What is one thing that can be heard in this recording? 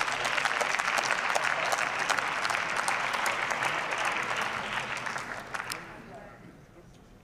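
An audience applauds in a large echoing hall, then the clapping fades.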